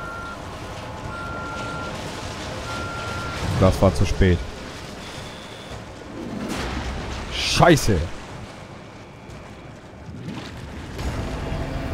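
A man wades and splashes through deep water.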